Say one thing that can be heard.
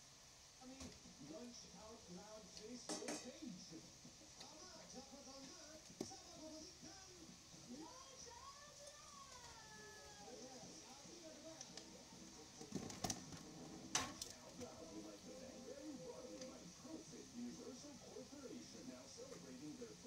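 Soup simmers and bubbles gently in a pot.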